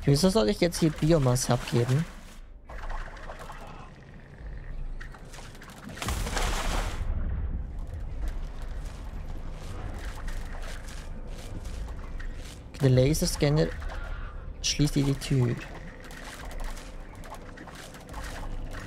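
A slimy creature squelches and slithers through a tunnel.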